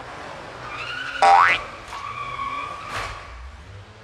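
A car thumps hard over a bump in the road.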